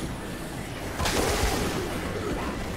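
Heavy blows thud and splatter in a brief fight.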